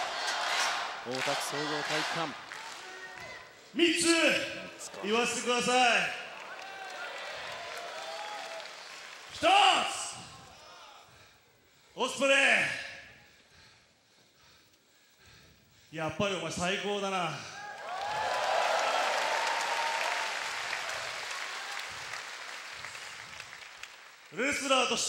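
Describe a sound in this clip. A man shouts into a microphone, booming through loudspeakers in a large echoing arena.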